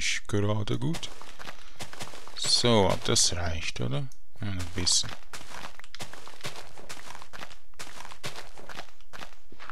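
Game digging sounds crunch repeatedly as dirt is dug with a shovel.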